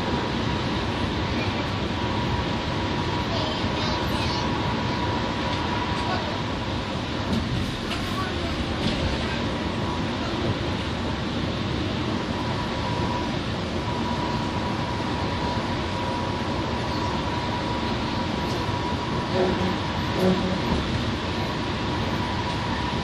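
Tyres roar on the road at highway speed.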